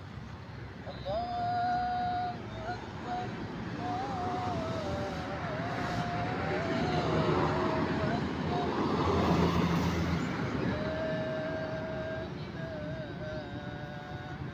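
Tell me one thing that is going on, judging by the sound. A group of men sing together in unison outdoors.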